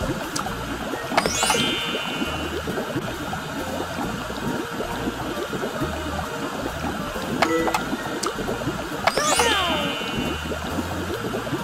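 Water bubbles and boils steadily in a pot.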